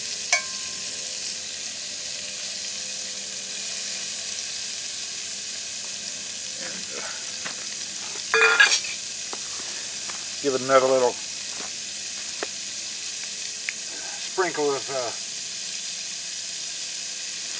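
Meat sizzles steadily in a hot pot.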